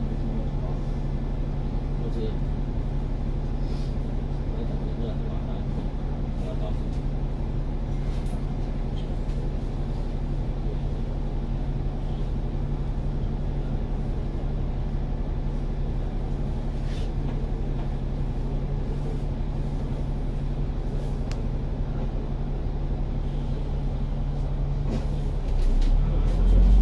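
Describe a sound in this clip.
Traffic hums steadily along a busy city street.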